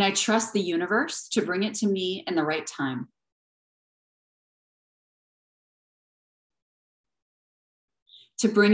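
A woman speaks calmly close to the microphone.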